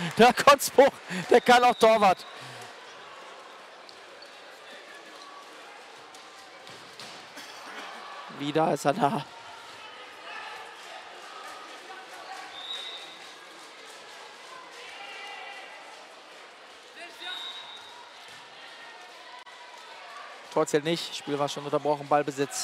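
Shoes squeak on a hard indoor court.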